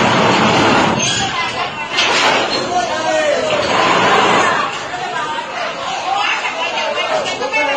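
A heavy train carriage creaks and rumbles as it is pushed along rails.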